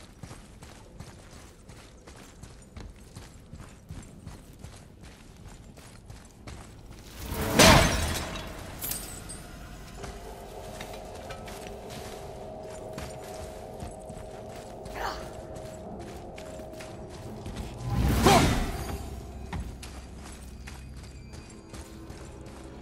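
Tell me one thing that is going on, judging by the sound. Heavy footsteps crunch over stony ground.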